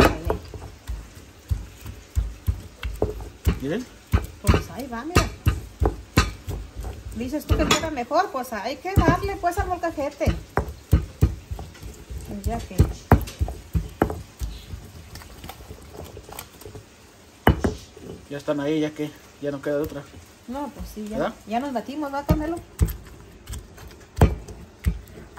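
A stone pestle knocks and grinds in a stone mortar.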